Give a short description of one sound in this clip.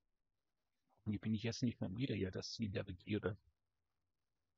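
A man speaks briefly and animatedly into a close microphone.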